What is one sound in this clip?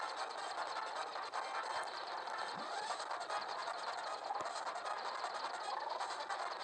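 An airship engine drones steadily in a video game.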